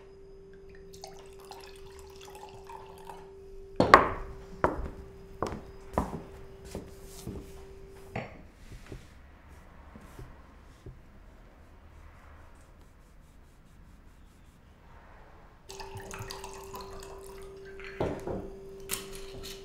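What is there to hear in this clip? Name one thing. Wine pours from a bottle into a glass.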